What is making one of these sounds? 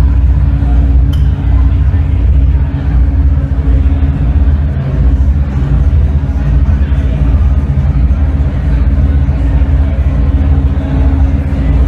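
Loud electronic music with a deep droning bass plays steadily.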